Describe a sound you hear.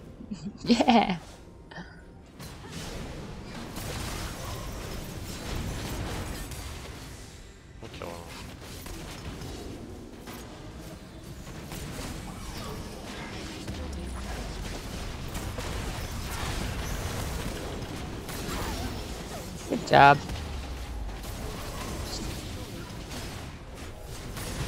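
Fast game battle sounds clash and crackle with magic blasts.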